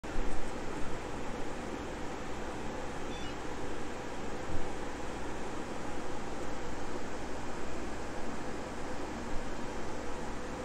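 Computer fans whir steadily with a rushing hum.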